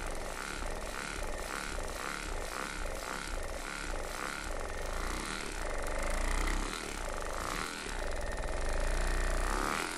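A massage gun buzzes steadily against a body.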